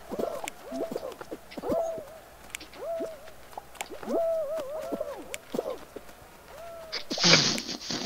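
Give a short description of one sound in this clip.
Cartoon characters squeak and chirp with short rising and falling whistles.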